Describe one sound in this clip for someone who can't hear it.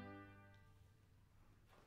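A saxophone quartet holds a final chord in a reverberant hall, which then fades away.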